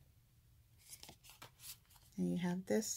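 A sheet of stickers crinkles softly as fingers handle it.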